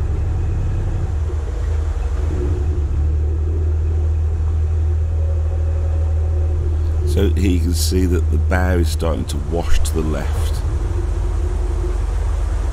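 A boat engine chugs steadily at a low pitch.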